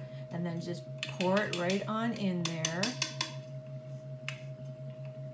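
A plastic blender jar clicks and knocks as it is fitted and handled.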